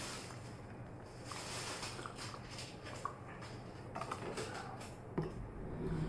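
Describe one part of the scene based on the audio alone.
A man slurps a drink from a small cup.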